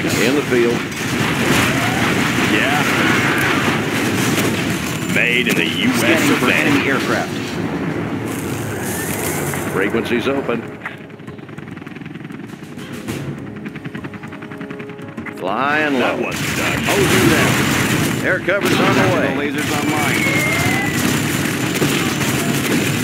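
Explosions boom and rumble in a battle.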